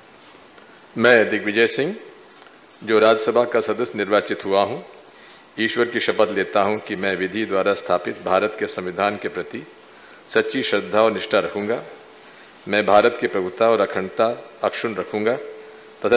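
An elderly man reads out a statement calmly into a microphone, with short pauses.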